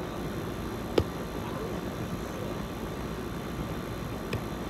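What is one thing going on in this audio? A volleyball is hit with a thump.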